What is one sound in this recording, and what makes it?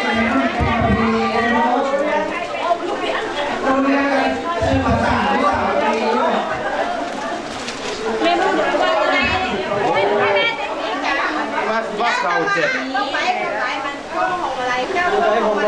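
Several women talk and chatter close by.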